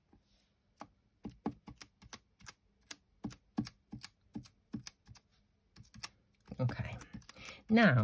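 Metal tweezers tap and scrape lightly on paper.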